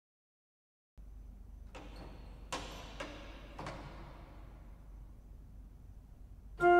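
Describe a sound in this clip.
An organ plays slow notes outdoors.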